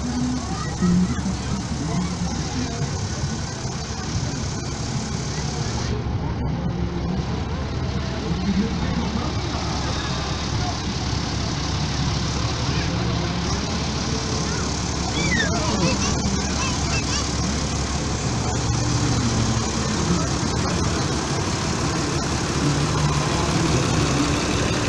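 A tractor engine rumbles loudly close by as it rolls slowly past.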